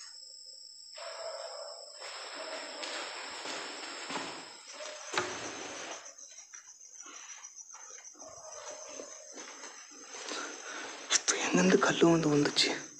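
Footsteps crunch slowly over a gritty floor.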